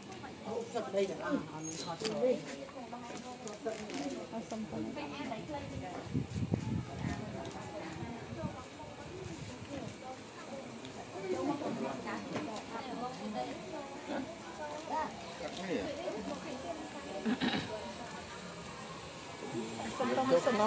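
Several adult men and women talk nearby outdoors.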